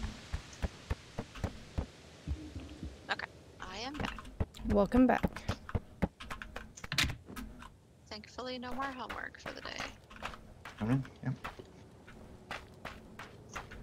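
Footsteps patter quickly.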